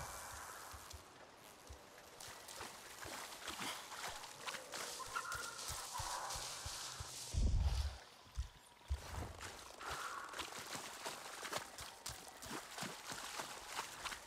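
Heavy rain pours steadily onto water.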